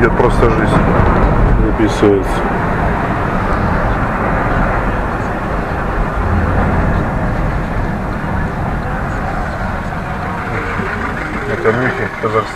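A car engine hums and tyres rumble on the road while driving.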